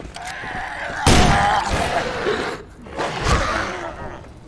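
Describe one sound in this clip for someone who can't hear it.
Heavy blows thud into a body.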